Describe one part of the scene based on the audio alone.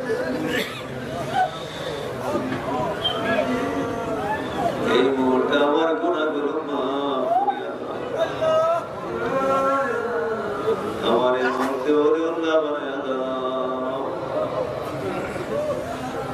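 A man preaches passionately in a chanting voice through a loud microphone and loudspeakers.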